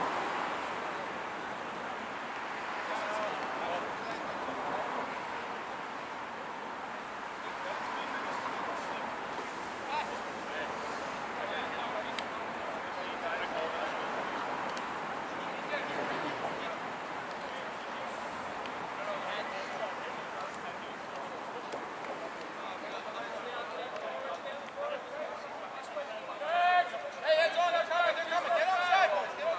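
Several young men and women call out and chatter outdoors at a distance.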